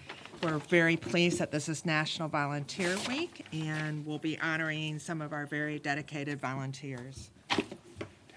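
A middle-aged woman speaks calmly into a microphone in a large room.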